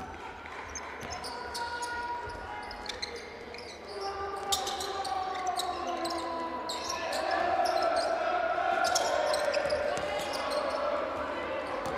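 A small crowd murmurs in a large echoing hall.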